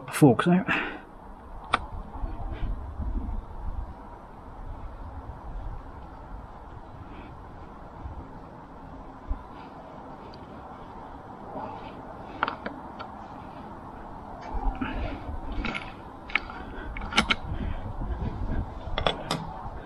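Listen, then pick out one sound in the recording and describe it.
A hex key ticks and clicks against a bolt.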